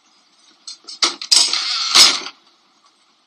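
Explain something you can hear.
A door slams shut.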